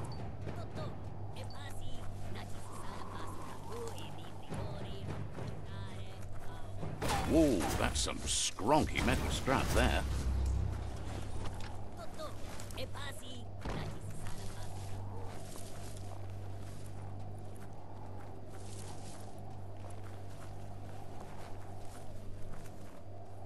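A low game soundtrack hums steadily throughout.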